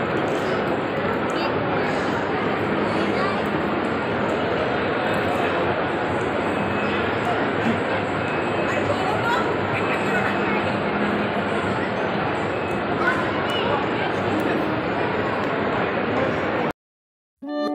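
Many people chatter in a large echoing hall.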